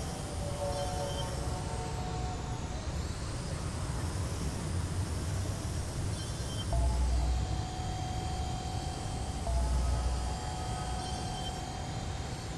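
A small drone's rotors whir steadily.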